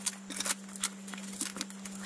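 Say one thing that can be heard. Scissors snip through foam wrapping.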